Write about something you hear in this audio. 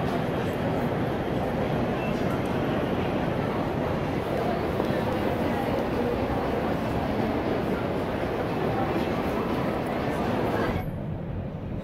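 A crowd of people chatters and walks in a large echoing hall.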